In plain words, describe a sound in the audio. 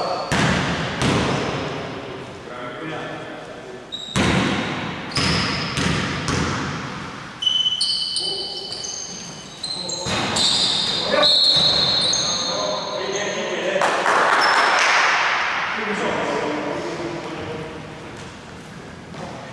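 A basketball bounces on a wooden floor, echoing around a large hall.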